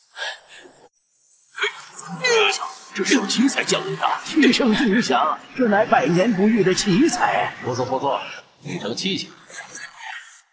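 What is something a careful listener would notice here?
A man shouts fiercely.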